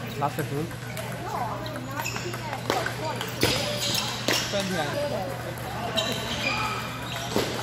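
Many people chatter in the background of a large echoing hall.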